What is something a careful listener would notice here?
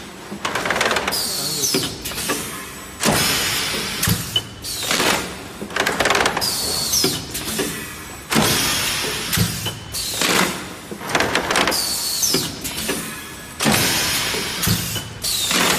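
Clear plastic trays clatter and rattle as they are pushed out.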